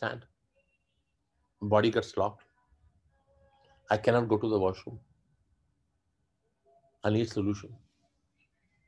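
A man speaks calmly in short phrases close by, with pauses between them.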